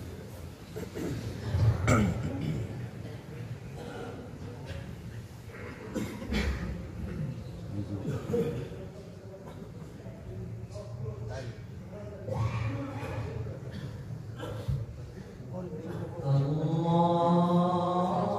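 A large crowd murmurs and shuffles in a large echoing hall.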